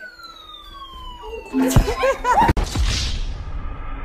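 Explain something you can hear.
A woman thuds onto the floor.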